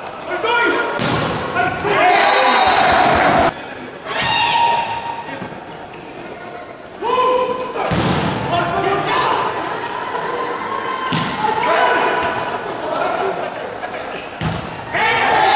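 A volleyball is struck hard several times in a large echoing hall.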